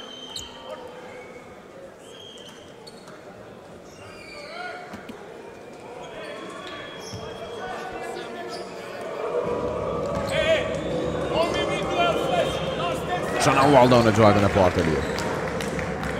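A large crowd cheers and chants in an echoing hall, growing louder.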